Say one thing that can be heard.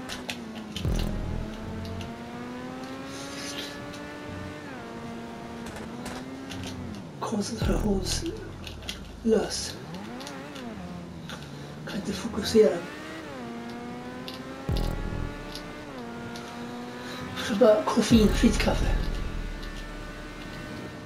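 A racing car engine screams at high revs, rising and dropping as it shifts gears.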